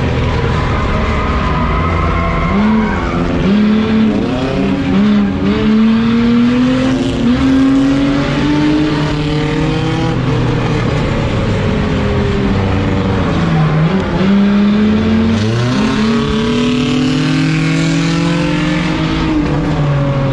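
The engine of a stripped-out race car revs hard and shifts through its gears, heard from inside the cabin.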